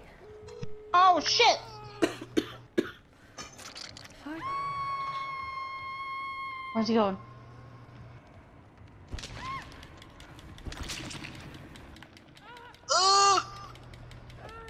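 A woman cries out in pain.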